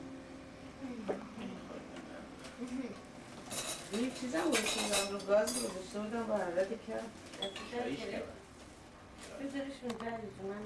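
Tea pours from a pot into a cup.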